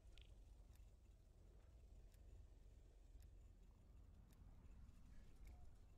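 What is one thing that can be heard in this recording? Short soft menu ticks sound each time the selection moves.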